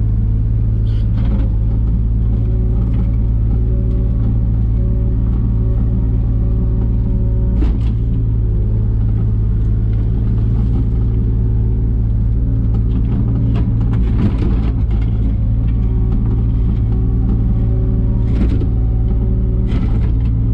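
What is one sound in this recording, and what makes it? A digger bucket scrapes and knocks against soil and stones.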